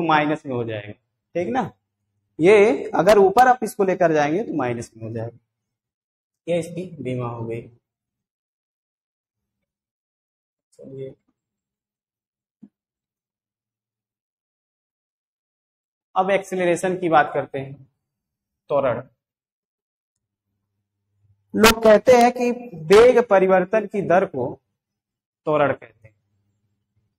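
A man lectures calmly, close by, in short bursts with pauses.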